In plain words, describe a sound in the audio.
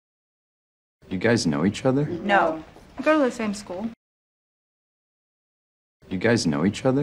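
A young woman speaks casually, close by.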